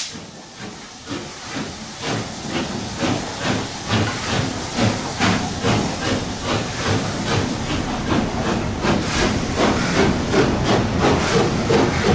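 A steam locomotive chuffs rhythmically, echoing under a bridge.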